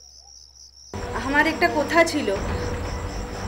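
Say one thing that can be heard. A woman speaks with feeling, close by.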